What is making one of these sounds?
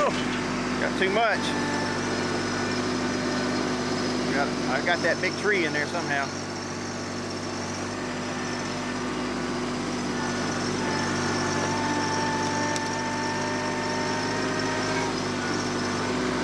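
Leafy branches rustle and scrape as a tractor pushes them.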